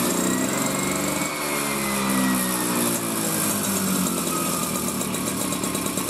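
A moped engine revs up and then slowly drops back.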